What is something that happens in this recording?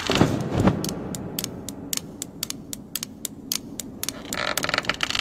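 Knitting needles click rapidly and steadily.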